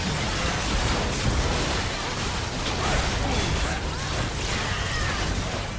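Spell effects and attacks crash and whoosh in a busy fight.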